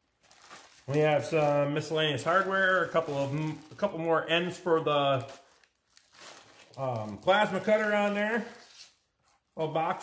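Plastic packaging crinkles in a man's hands.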